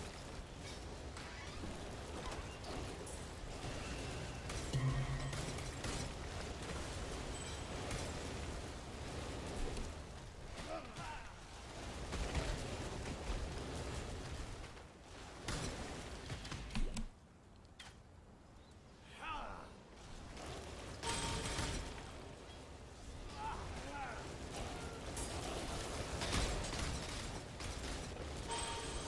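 Fighting sounds crash and thud rapidly with bursts of impacts.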